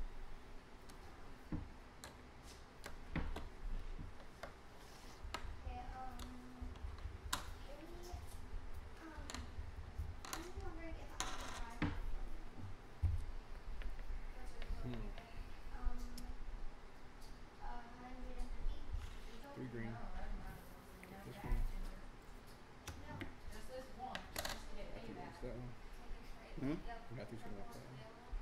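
Plastic game chips clack softly on a wooden table.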